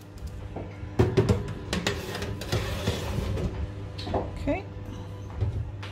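A metal baking tray scrapes as it slides into an oven.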